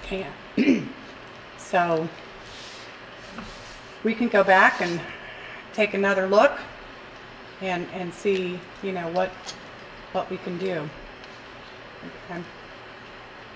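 A middle-aged woman speaks calmly into a microphone in a room with some echo.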